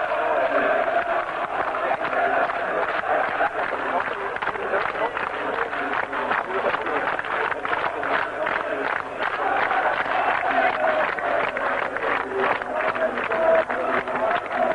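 Many people clap in rhythm.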